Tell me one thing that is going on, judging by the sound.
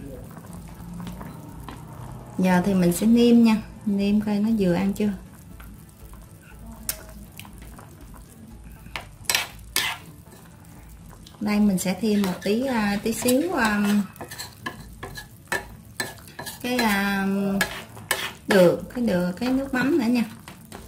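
Thick stew sloshes as a ladle stirs it.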